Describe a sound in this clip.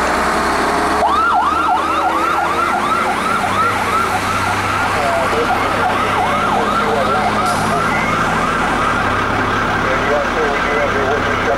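A fire truck's siren yelps rapidly, up and down.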